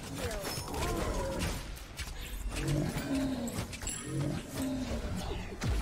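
Game effects crackle and burst in quick flashes.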